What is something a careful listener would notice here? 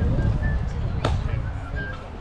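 A ball smacks sharply into a catcher's mitt.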